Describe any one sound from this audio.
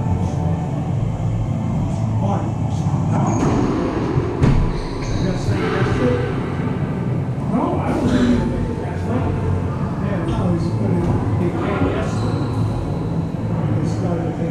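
Racquetballs smack off the walls with sharp echoing cracks.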